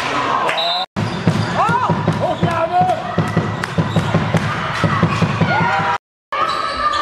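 A ball thuds as it bounces on the floor.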